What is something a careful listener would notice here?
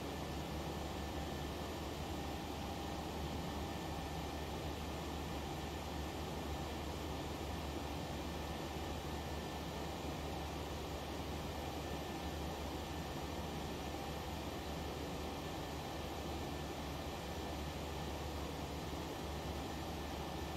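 Jet engines drone steadily in the background.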